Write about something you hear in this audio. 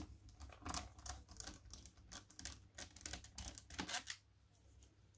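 A small screwdriver clicks and scrapes as it turns a screw.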